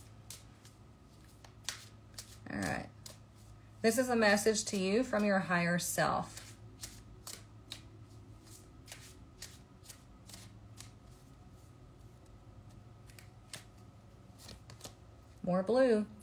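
Playing cards riffle and tap as they are shuffled.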